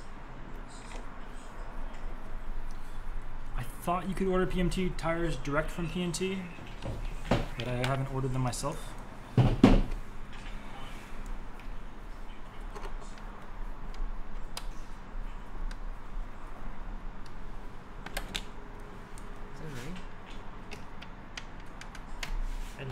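Small metal parts click and tap as hands work on a wheel.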